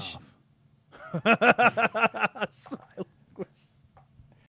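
A man laughs heartily close to a microphone.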